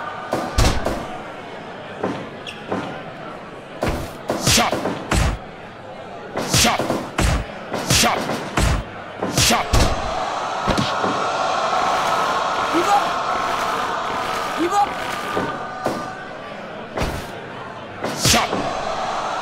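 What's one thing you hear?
Blows and slams thud loudly on a wrestling ring mat.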